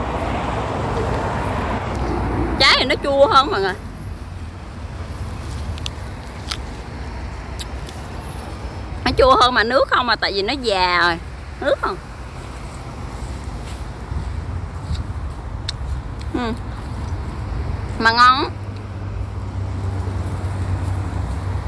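A young woman bites and crunches an apple.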